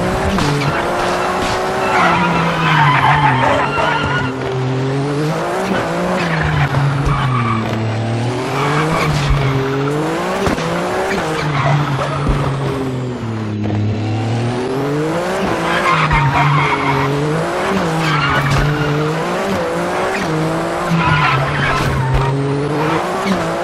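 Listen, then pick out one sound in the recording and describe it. A racing car engine roars, revving up and down as the gears change.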